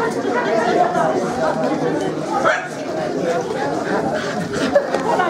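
A crowd of adults chatters.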